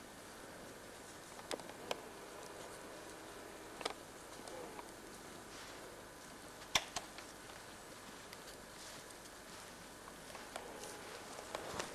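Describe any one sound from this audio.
A small twig fire crackles and pops.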